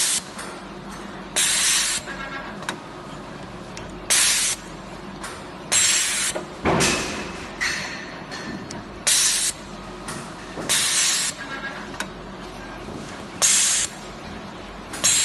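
Compressed air hisses loudly in short bursts at a regular pace.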